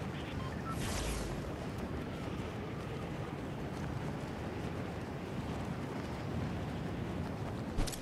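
Wind rushes steadily past during a long fall through the air.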